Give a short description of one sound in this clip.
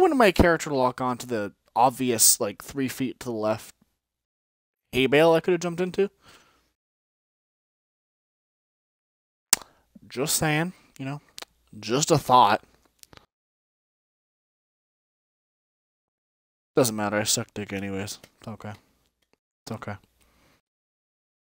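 A man talks casually through a headset microphone, in short bursts with pauses.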